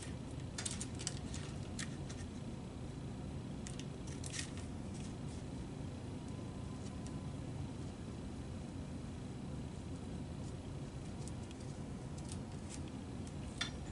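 Scissors snip through thin plastic sheet.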